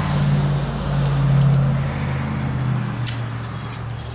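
Metal parts click and clink as a part is adjusted by hand.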